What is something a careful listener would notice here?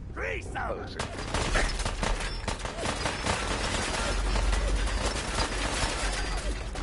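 Gunshots crack rapidly.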